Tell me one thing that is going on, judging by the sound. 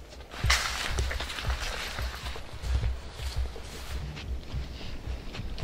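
Footsteps crunch on a sandy path.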